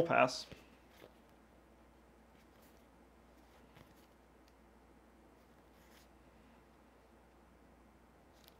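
Playing cards are shuffled and tapped by hand.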